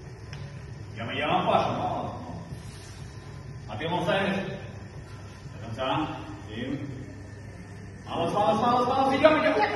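A man shouts encouragement nearby.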